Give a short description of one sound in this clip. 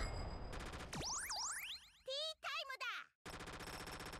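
Bright game chimes sweep upward in quick rising tones.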